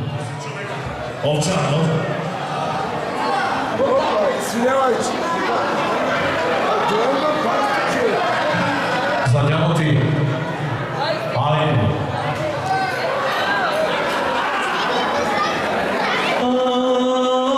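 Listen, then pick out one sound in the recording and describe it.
A crowd of men and women chatters and talks loudly nearby.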